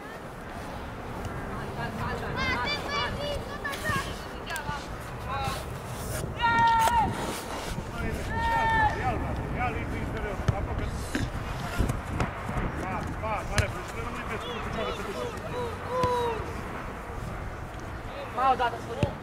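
Young players shout and call out to each other across an open outdoor field.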